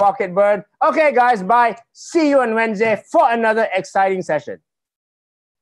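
A man speaks calmly through a microphone, heard over an online call.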